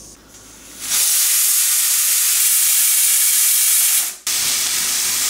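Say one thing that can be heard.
A pressure cooker hisses loudly with steam.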